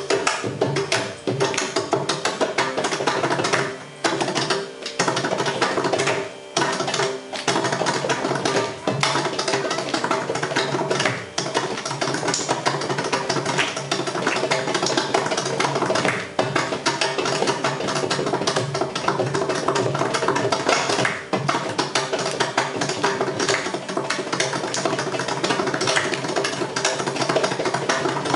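A drum is played with the hands in quick, lively rhythms.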